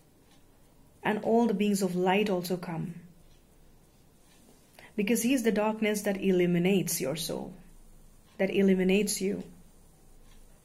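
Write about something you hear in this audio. A young woman sings softly and close by in short phrases.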